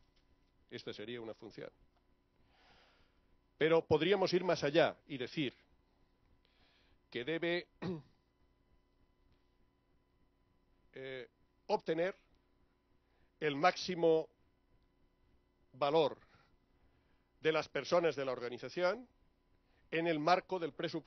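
A middle-aged man speaks with animation into a microphone, in bursts with pauses.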